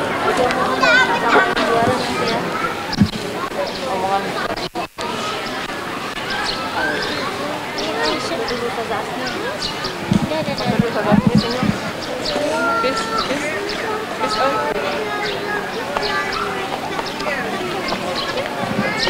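A crowd of children and adults chatters loudly all around.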